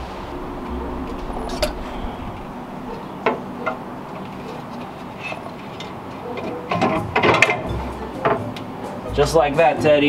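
Metal parts clink and tap as a radiator is handled.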